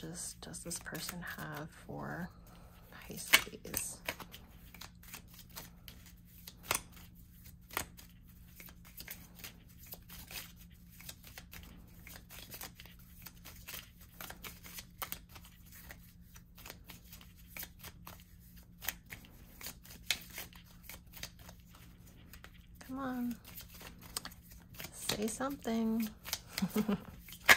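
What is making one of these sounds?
Playing cards riffle and slap softly as they are shuffled by hand, close by.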